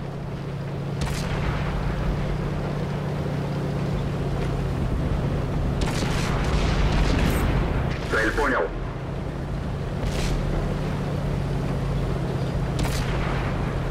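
A tank cannon fires with sharp booms.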